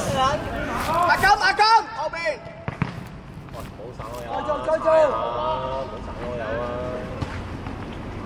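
Young men shout to each other across an outdoor court.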